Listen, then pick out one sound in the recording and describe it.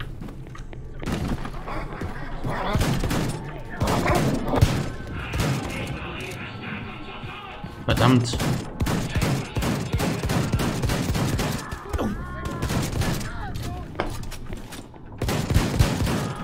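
Rapid gunfire rattles and echoes.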